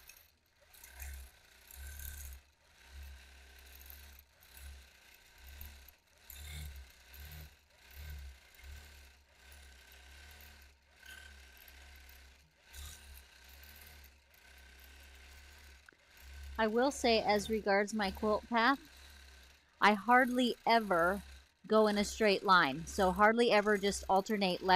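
A quilting machine hums and stitches in short bursts.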